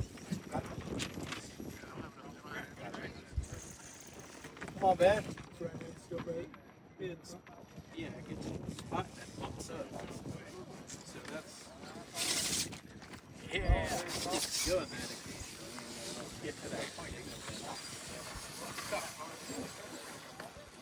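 Plastic wheels scrape and knock against rock.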